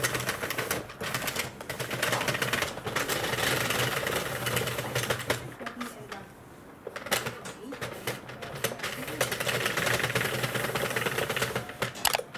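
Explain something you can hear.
A plastic knitting machine clatters and clicks rapidly as its crank is turned.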